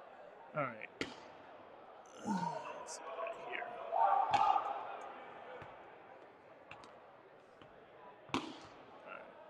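Rubber balls thud on a wooden floor in an echoing hall.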